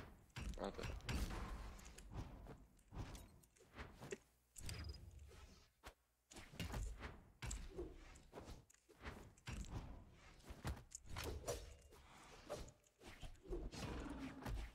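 Cartoon fighters clash with quick hits, whooshes and bursts.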